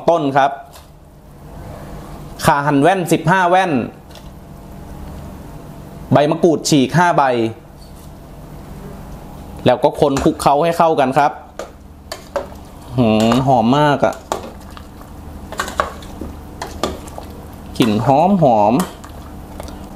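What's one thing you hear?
Soup simmers and bubbles gently in a pot.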